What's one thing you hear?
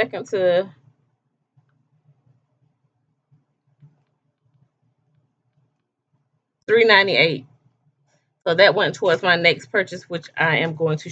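A woman speaks with animation close to a microphone, pausing in between.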